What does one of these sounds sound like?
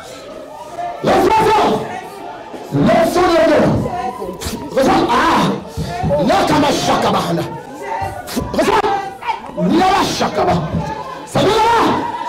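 A man preaches loudly and fervently through a loudspeaker in an echoing hall.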